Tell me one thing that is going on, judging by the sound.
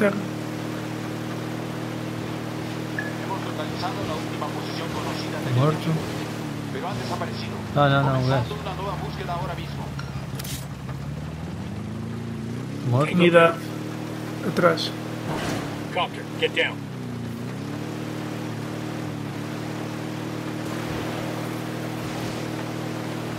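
A boat motor hums steadily, dipping in pitch now and then.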